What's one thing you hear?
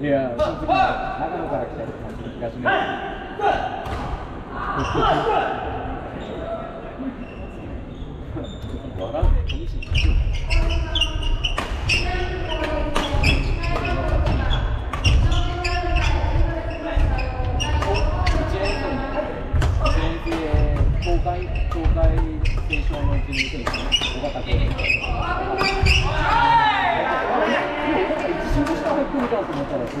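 Men and women chat and call out across the hall.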